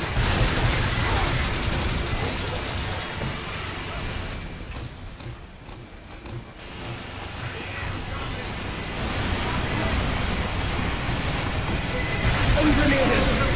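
A heavy machine gun spins up and fires rapidly.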